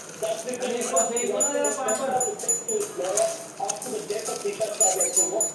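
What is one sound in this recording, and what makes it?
Small coins chime in quick bright pings.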